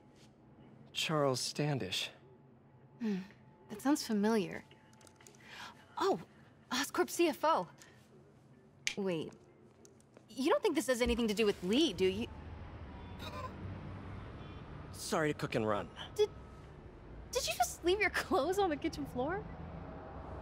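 A young woman speaks with animated surprise, close by.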